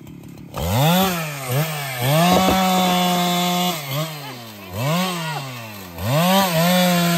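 A chainsaw engine revs up and down in short bursts.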